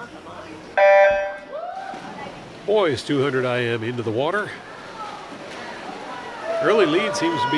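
Swimmers dive and splash into the water.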